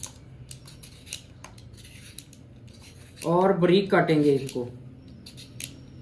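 A peeler scrapes the skin off a potato.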